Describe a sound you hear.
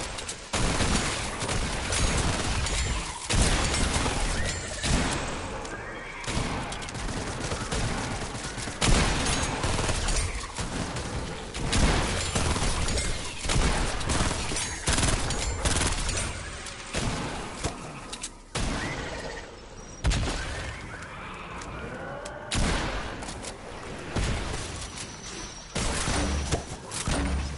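Guns fire in sharp, rapid bursts.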